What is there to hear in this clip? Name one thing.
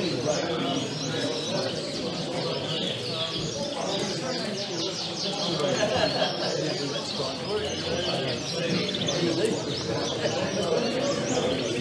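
Several canaries sing and trill nearby.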